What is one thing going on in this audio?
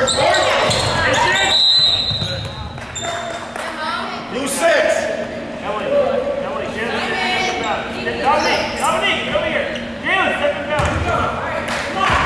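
Basketballs bounce and thud in a large echoing hall.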